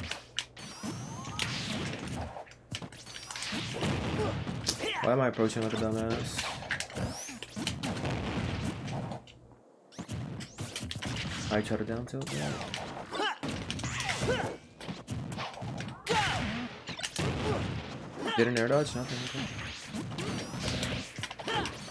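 Video game fighting sound effects clash with hits, swooshes and blasts.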